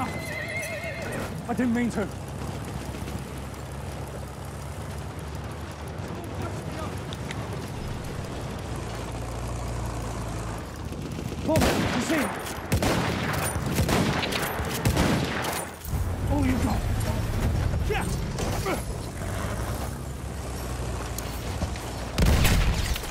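Horse hooves gallop over sand.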